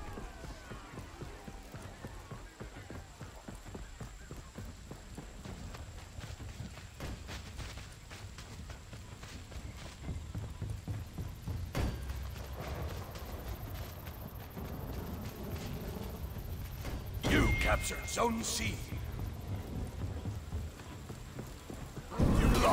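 Footsteps run over stone and wooden steps.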